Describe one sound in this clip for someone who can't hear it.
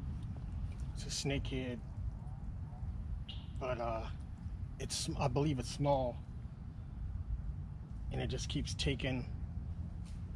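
A man speaks calmly in short bursts close by.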